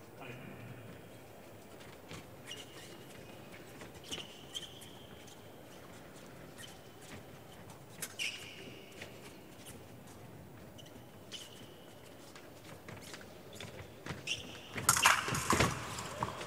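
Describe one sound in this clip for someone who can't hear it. Fencers' feet tap and shuffle quickly on a metal strip.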